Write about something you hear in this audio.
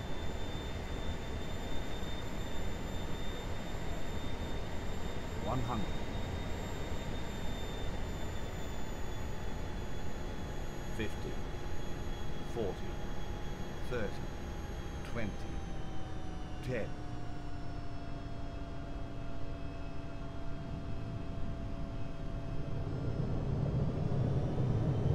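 Air rushes past steadily.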